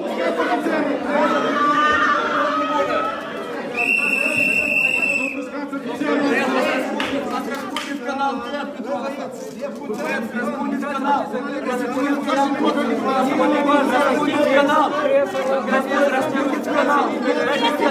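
A crowd of men and women shout over each other close by.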